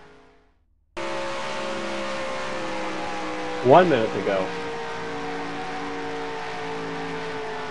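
A V8 stock car engine drones at full throttle close by.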